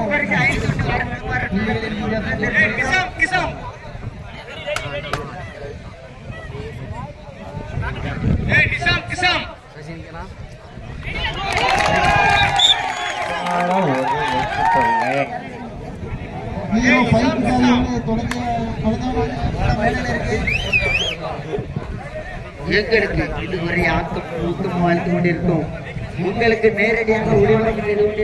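A large outdoor crowd shouts and cheers loudly.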